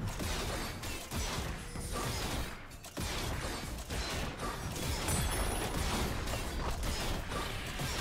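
Video game combat effects crash, zap and whoosh in a busy fight.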